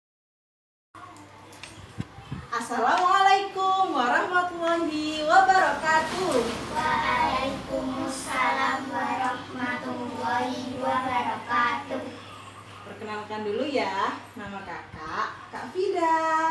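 A young woman tells a story with animation, close by.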